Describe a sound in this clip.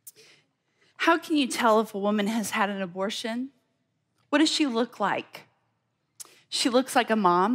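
A woman speaks calmly into a microphone, heard through loudspeakers.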